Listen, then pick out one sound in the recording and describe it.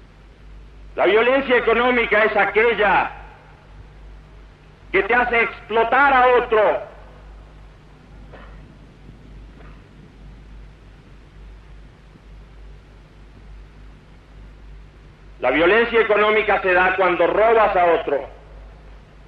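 A man sings loudly into a microphone outdoors, in short phrases with pauses between them.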